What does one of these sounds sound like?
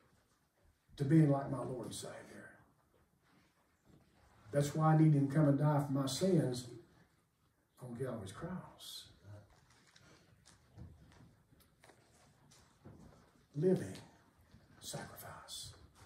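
An elderly man preaches with animation into a microphone in an echoing hall, pausing between phrases.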